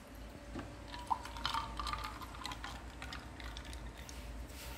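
Milk pours and splashes into a glass.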